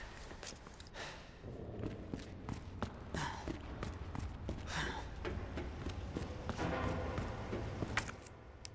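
Footsteps thud on a hard floor at a steady walking pace.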